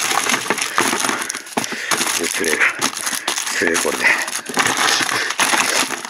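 Packages clatter softly in a plastic case.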